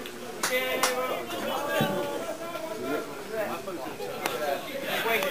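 Men clap their hands.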